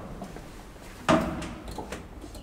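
A finger clicks an elevator button.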